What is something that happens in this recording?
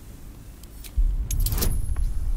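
A magical whoosh rises sharply and rings out.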